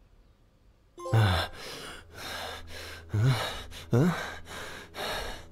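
A man speaks softly and wearily, close by.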